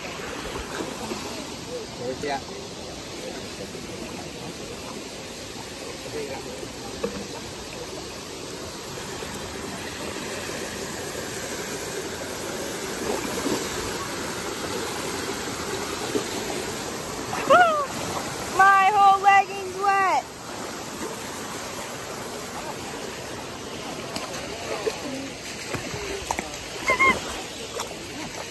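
Shallow water flows and splashes steadily.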